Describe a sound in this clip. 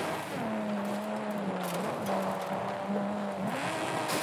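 Tyres rumble over grass.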